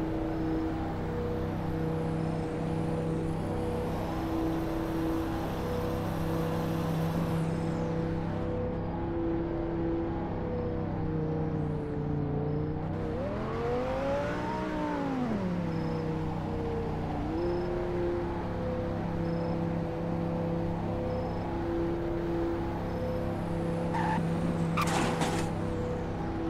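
A car engine hums steadily, revving up and dropping back once.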